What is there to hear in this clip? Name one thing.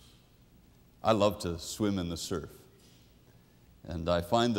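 A middle-aged man speaks warmly and with animation into a microphone.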